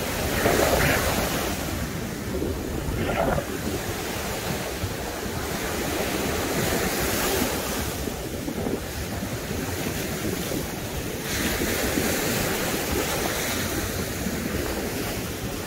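Waves break and wash up onto the shore.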